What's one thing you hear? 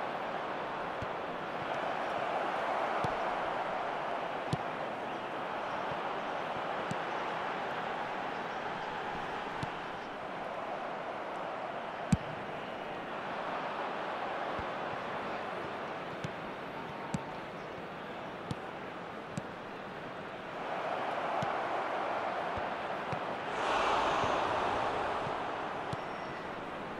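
A ball is kicked with short, sharp thuds.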